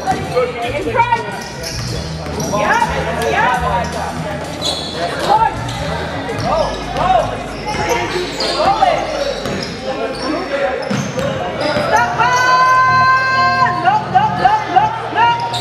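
Players and spectators call out in a large echoing gym.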